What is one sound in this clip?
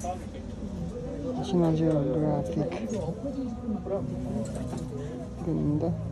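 A plastic hanger clacks and rustles as a jacket is lifted and turned.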